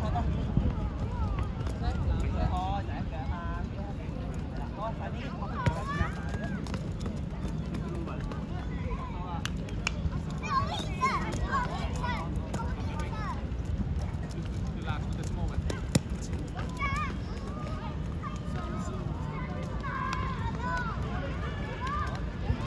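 Young women shout and call out from across an open outdoor field.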